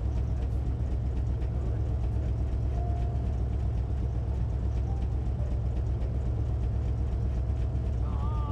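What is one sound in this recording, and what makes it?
A sports car engine idles with a deep, steady rumble.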